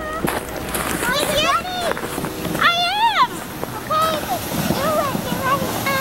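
A young child squeals and shouts excitedly.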